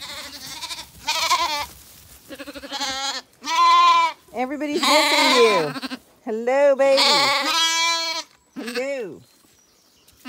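Lambs bleat loudly and repeatedly close by.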